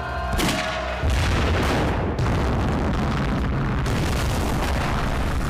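Loud explosions roar and rumble.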